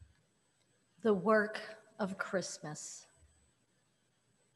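An elderly woman reads out calmly into a microphone.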